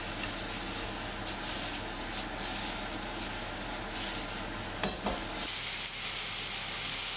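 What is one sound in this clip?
Noodles sizzle in a hot pan.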